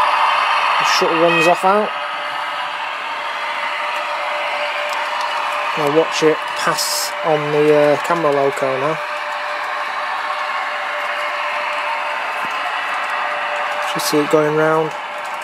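A model train's horn sounds in short blasts.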